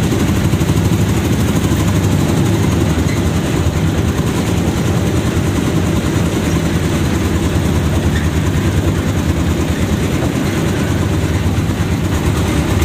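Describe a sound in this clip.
A vehicle's engine rumbles steadily while riding along a street.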